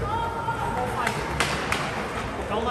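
A hockey stick smacks a puck with sharp clacks.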